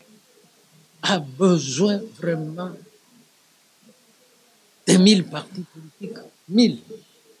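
An elderly man speaks calmly and closely into a microphone, in short bursts with pauses.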